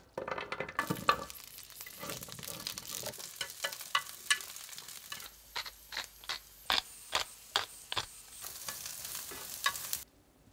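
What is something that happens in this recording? Vegetables sizzle in a hot pan.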